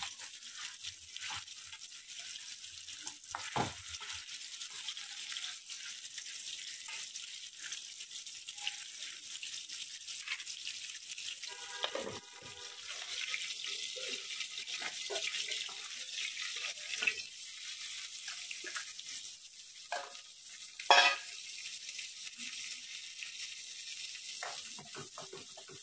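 A metal spatula scrapes and clinks against a metal pan.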